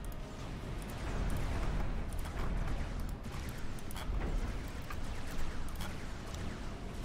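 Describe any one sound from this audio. Small weapons fire in quick, scattered bursts.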